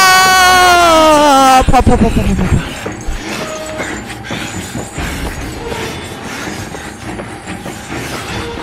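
Footsteps walk slowly on a hard floor.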